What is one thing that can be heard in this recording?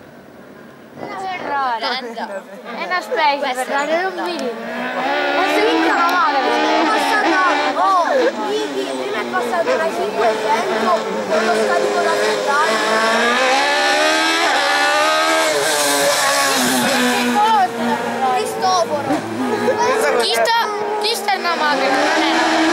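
A racing car engine revs hard and roars up the road, shifting through gears.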